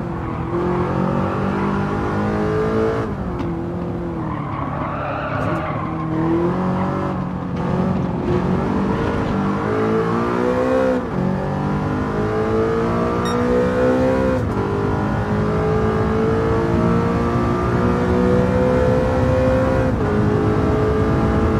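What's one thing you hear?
A race car engine roars, revving up through the gears and dropping in pitch at each gear change.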